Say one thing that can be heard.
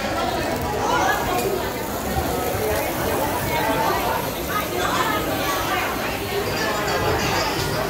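Food sizzles on a hot flat-top griddle.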